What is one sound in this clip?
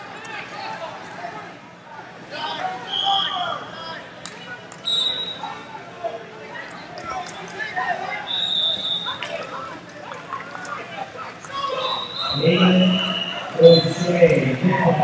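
A crowd of men and women shouts encouragement in an echoing hall.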